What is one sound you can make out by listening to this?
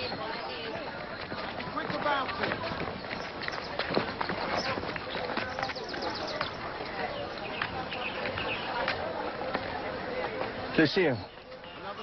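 A crowd chatters and clamours outdoors.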